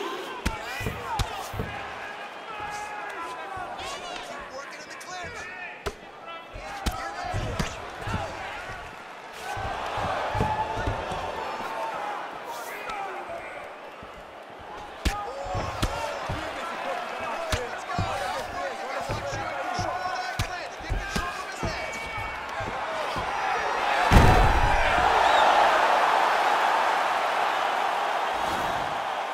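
A crowd cheers and roars, swelling loudly.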